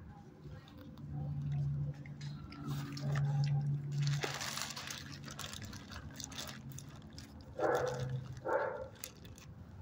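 A dog whines softly close by.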